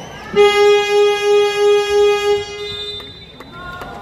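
A loud arena buzzer sounds steadily.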